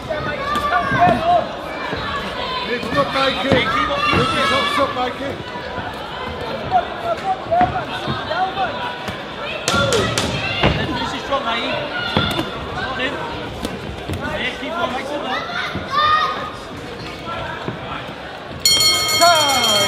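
Boxing gloves thud against bodies in quick blows.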